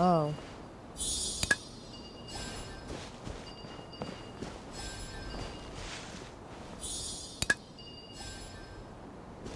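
Bright sparkling chimes ring out in short bursts.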